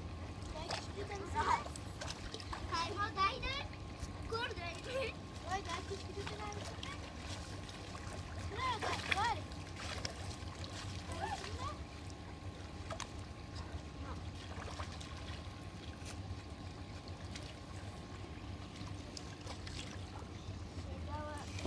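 Water splashes as a boy wades through a shallow stream.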